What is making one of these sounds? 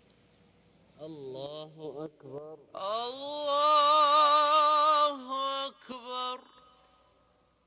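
A man chants in a long, drawn-out voice through loudspeakers, echoing across a wide open space.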